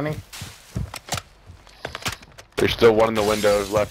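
A rifle clicks and clatters as it is handled.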